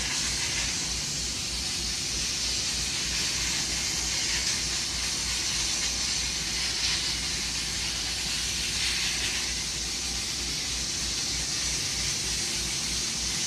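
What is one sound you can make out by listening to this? Waves lap on open water.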